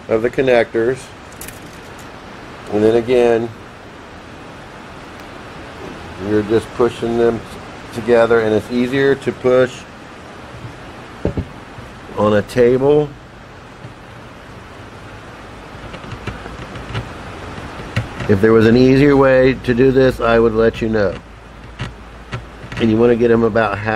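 A middle-aged man talks calmly and explains, close by.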